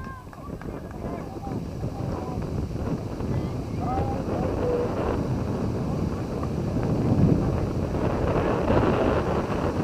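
Wind blows steadily outdoors, rumbling and growing stronger.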